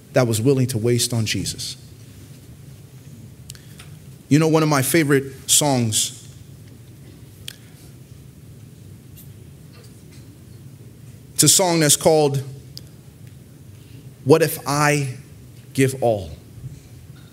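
A man speaks slowly and calmly into a microphone, with pauses, in a room with some echo.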